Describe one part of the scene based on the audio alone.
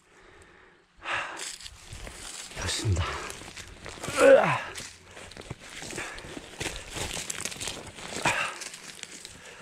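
Dry grass and twigs rustle under a gloved hand.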